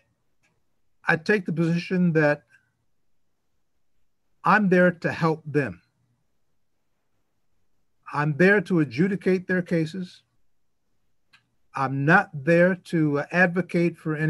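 An older man speaks slowly and calmly over an online call, with long pauses.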